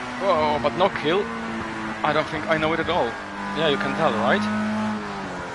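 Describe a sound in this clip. A racing car engine blips sharply as it shifts down.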